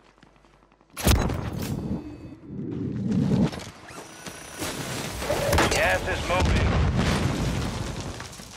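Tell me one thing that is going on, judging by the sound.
Gunshots crack close by.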